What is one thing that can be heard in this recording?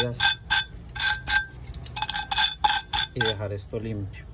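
A metal tool scrapes against a metal lid.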